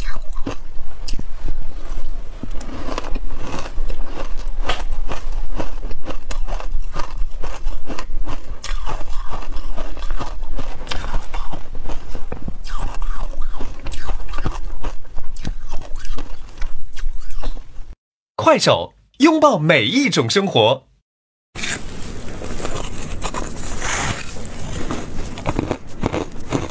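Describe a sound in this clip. A young woman chews food close to a microphone with soft wet clicks.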